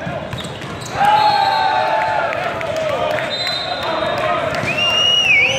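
Young men shout and cheer loudly.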